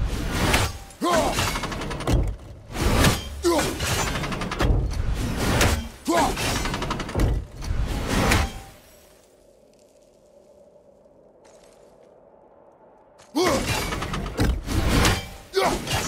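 An axe whooshes through the air as it is thrown and caught again.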